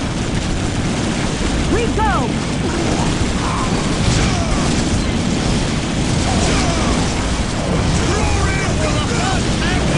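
Flamethrowers roar in bursts.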